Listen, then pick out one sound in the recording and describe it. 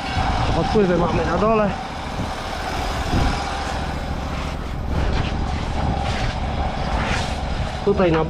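A rubber hose scrapes and drags over pavement.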